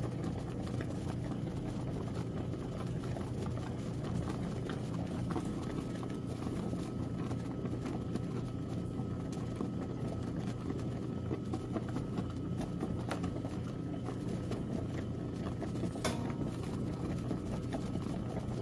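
A washing machine churns and sloshes soapy water in a steady rhythm.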